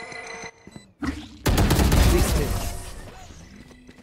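A submachine gun fires rapid bursts close by.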